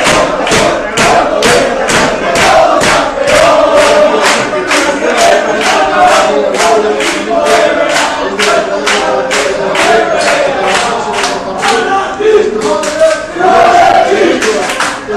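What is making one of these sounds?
A crowd claps hands in a fast, steady rhythm.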